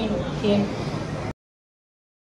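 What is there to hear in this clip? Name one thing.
A woman speaks with animation close by.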